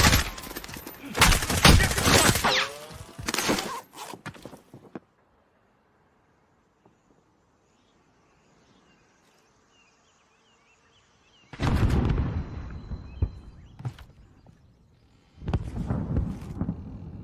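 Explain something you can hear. Rapid gunshots crack and echo.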